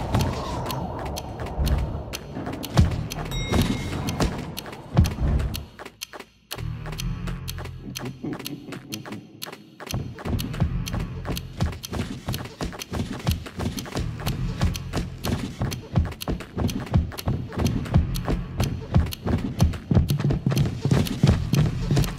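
Small footsteps patter on stone, echoing in a cave.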